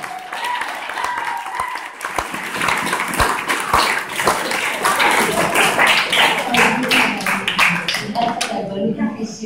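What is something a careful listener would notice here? A group of women clap and cheer loudly in an echoing room.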